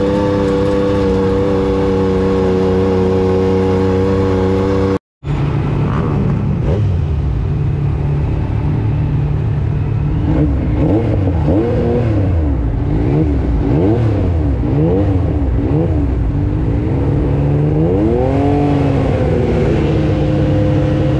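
A buggy engine roars at speed.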